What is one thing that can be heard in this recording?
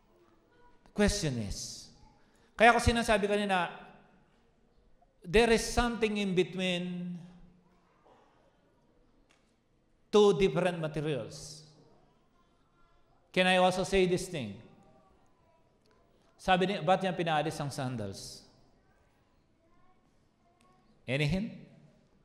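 A man speaks with animation into a microphone in short bursts, heard over loudspeakers in a large echoing hall.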